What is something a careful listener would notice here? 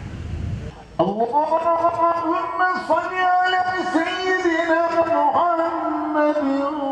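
A man chants the call to prayer over a loudspeaker outdoors.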